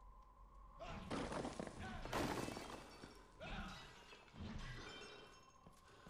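Metal weapons clash and slash in a fight.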